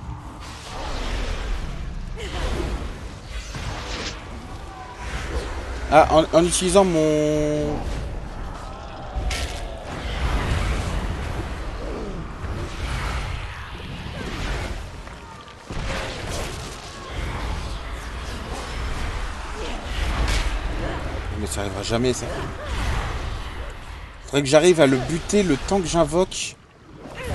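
A large creature roars.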